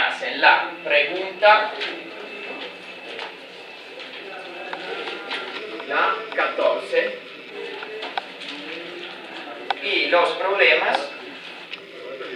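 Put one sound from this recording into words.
A young man talks.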